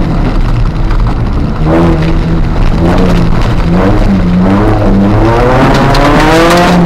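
Gravel crunches and rattles under the tyres.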